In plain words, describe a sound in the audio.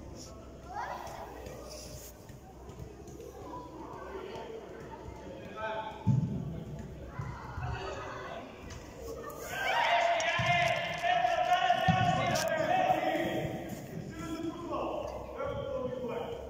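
Children shout across a large echoing hall.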